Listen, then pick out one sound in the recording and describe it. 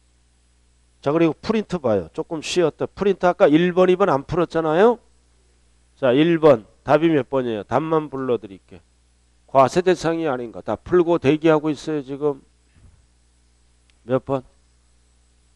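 A man speaks calmly and clearly into a clip-on microphone, lecturing.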